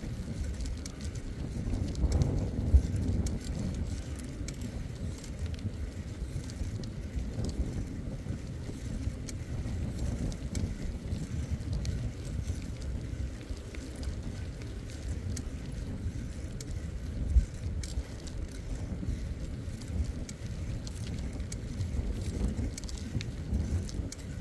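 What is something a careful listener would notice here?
Bicycle tyres roll steadily over a paved path.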